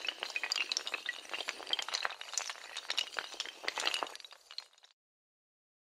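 Many small tiles topple and clatter against each other in a rapid chain.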